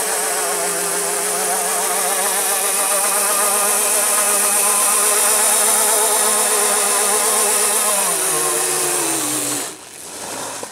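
An electric quad bike's motor whines at high revs, then winds down.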